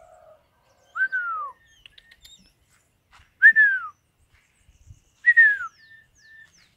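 A dog whines in short high falling tones.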